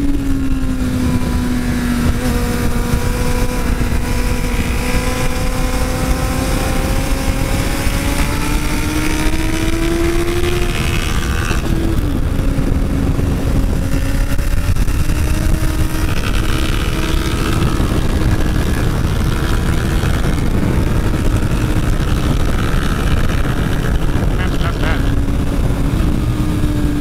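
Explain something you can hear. Wind rushes loudly past at speed.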